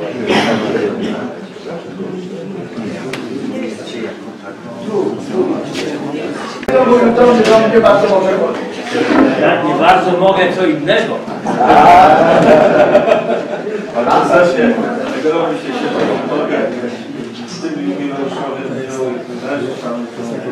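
A murmur of many voices carries through the room.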